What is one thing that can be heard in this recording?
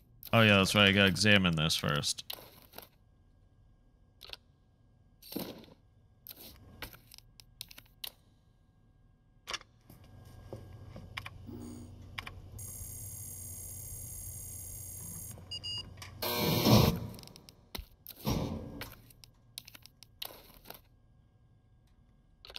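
Short menu clicks sound again and again.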